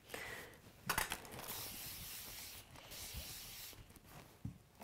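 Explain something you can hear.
A steam iron hisses.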